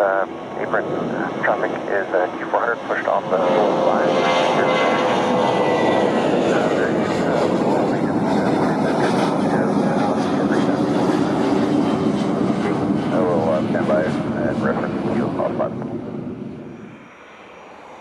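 A jet airliner's engines roar loudly as it taxis close by.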